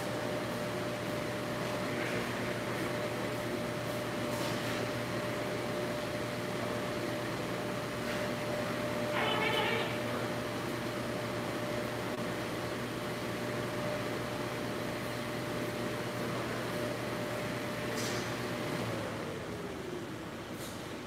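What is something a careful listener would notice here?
Water sprays with a steady hiss.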